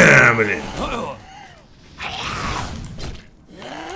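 Fire whooshes in a burst of flame.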